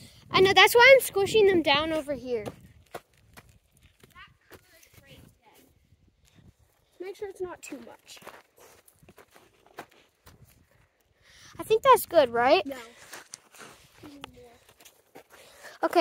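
Footsteps crunch on dry dirt and twigs.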